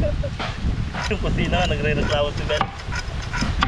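A young man talks and laughs nearby.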